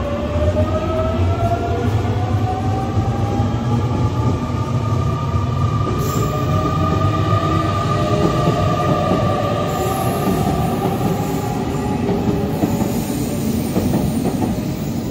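A train rumbles past on the tracks.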